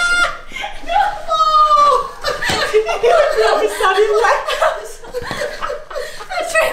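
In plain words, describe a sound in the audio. Two women laugh loudly and shriek nearby.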